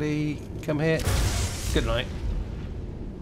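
A spell of lightning crackles and bursts with a loud zap.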